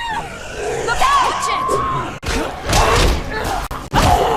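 A gas canister explodes with a loud boom.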